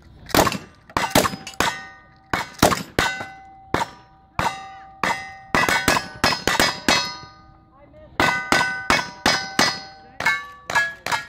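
Steel targets ring out with a bright clang when hit.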